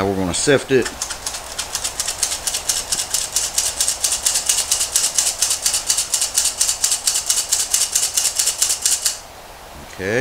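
A flour sifter clicks rapidly and steadily as its handle is squeezed.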